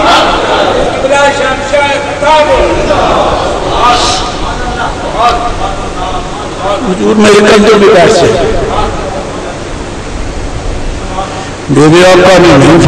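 An elderly man speaks with animation into a microphone, heard through a loudspeaker in an echoing hall.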